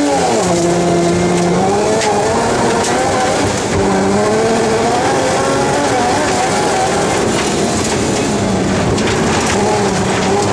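A rally car engine roars loudly from inside the cabin, revving up and down through the gears.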